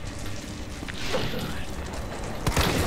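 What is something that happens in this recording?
A creature shrieks loudly.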